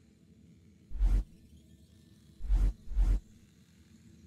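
Short electronic clicks sound as menu items are selected.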